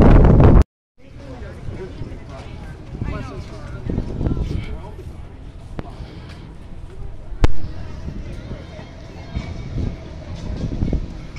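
A group of young men and women chatter nearby as they walk.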